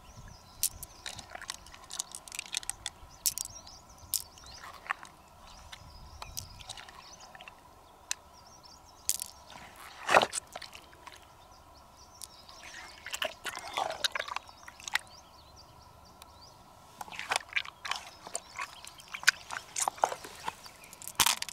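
Small glass beads click and rattle together in a hand.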